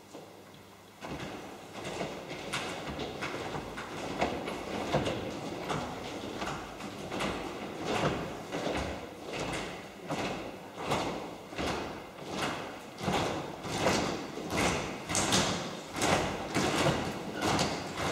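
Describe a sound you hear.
A large children's choir sings together.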